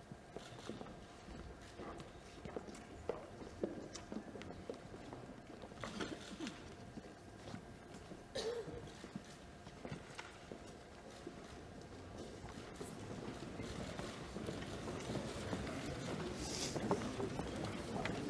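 Chairs creak and knock as people sit down.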